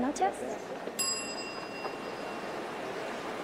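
A service bell rings once with a clear ding that fades away.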